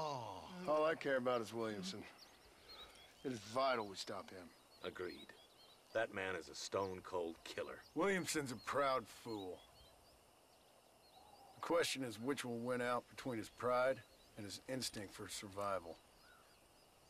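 A man speaks in a low, gravelly voice, close by.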